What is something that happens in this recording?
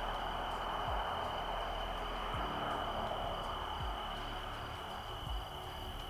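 A car drives off into the distance and fades away.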